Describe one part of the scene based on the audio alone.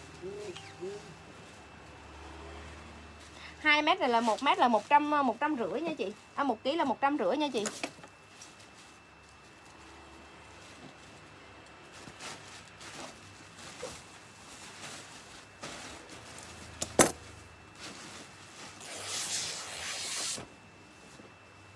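Cloth rustles as fabric is handled.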